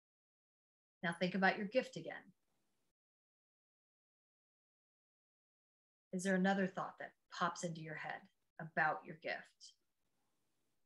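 A middle-aged woman speaks calmly and close to a microphone, with pauses.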